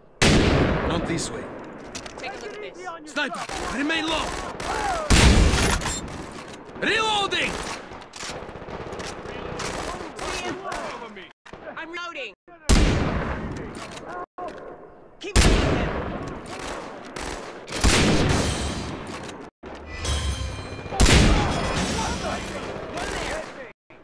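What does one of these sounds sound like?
A rifle fires loud single shots, each echoing away.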